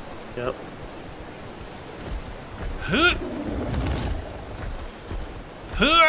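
A large creature lets out short rising squawks.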